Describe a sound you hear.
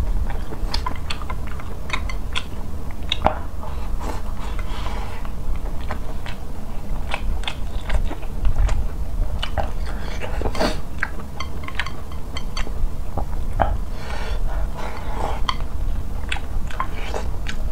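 Chopsticks click against a bowl.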